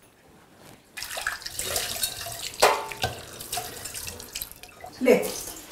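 Dishes clink in a sink.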